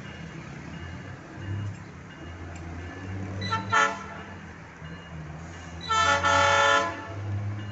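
A distant locomotive engine rumbles as it approaches.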